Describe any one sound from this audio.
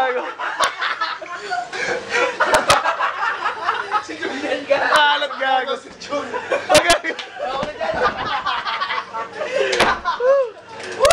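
Young women talk and laugh excitedly nearby.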